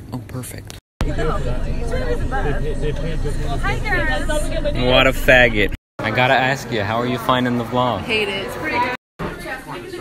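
Young people talk and laugh loudly nearby outdoors.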